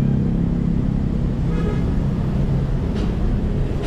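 A motorbike engine hums close by.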